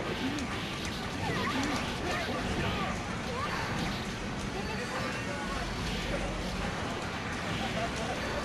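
Fiery explosions from a fighting game boom and crackle.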